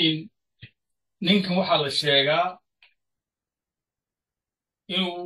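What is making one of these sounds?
A middle-aged man speaks calmly into a nearby microphone, in short phrases.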